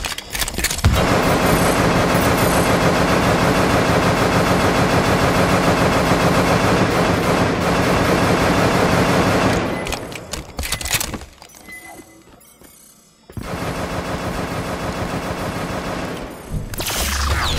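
A rifle fires in long rapid bursts.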